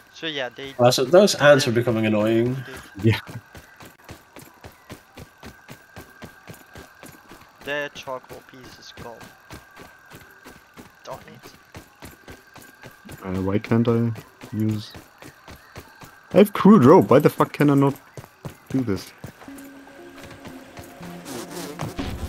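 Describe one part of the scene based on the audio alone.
Quick footsteps patter on dry ground.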